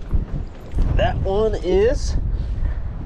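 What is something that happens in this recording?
A man speaks excitedly nearby.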